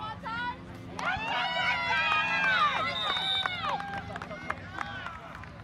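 A crowd of spectators cheers and yells loudly.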